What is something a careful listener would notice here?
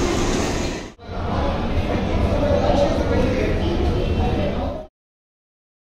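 An escalator rumbles steadily.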